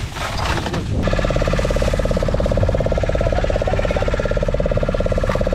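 Ice crunches and rattles as it pours out of a sack into a tub.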